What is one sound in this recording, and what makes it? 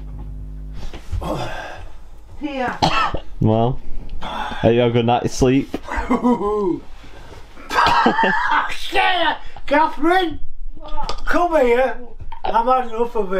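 An elderly man talks loudly and with animation close by.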